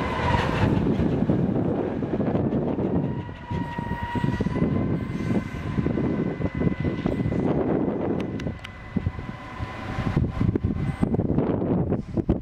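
A diesel train engine drones as it pulls away and slowly fades into the distance.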